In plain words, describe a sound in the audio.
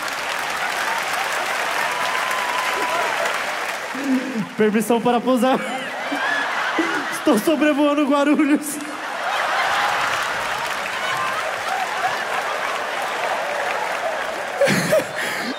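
A crowd cheers and applauds loudly in a large hall.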